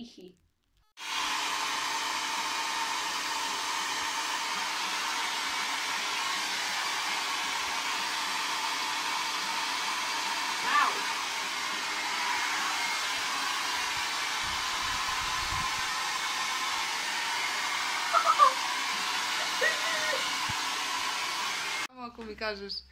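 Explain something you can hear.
A hair dryer blows with a steady whir.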